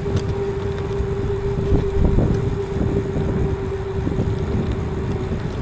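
Bicycle tyres hum on a paved path.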